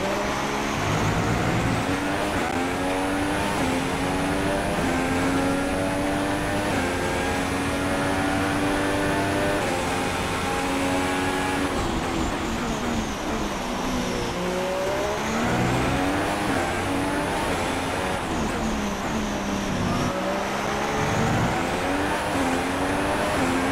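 A Formula One car engine screams as it accelerates through the gears.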